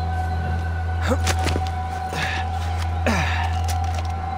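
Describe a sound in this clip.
Hands scrape and grip against rock while climbing.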